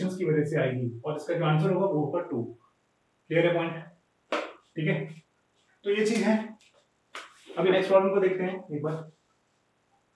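A young man speaks calmly and clearly nearby, explaining.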